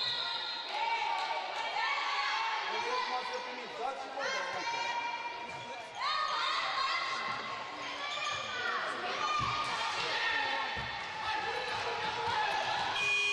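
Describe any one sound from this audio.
Young women shout and call out across a large echoing hall.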